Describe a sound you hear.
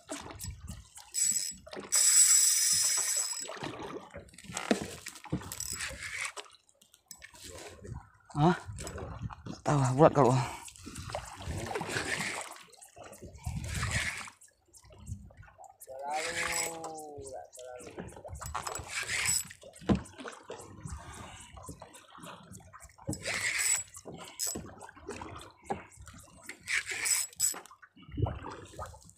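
Waves slap against a small boat's hull.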